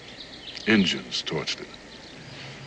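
A man speaks quietly and briefly up close.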